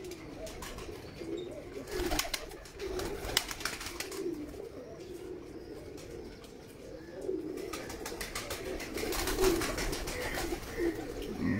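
Pigeons coo softly and steadily nearby.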